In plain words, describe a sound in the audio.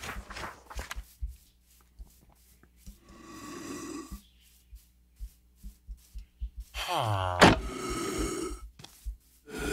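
Footsteps tap softly on stone.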